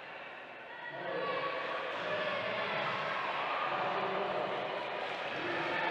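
A crowd cheers and claps loudly.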